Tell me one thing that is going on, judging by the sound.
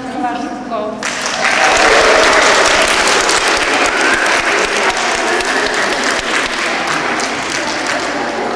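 A crowd claps and applauds in a large echoing hall.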